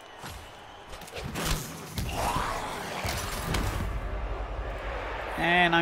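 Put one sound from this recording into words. Game sound effects of a heavy tackle thud and crash.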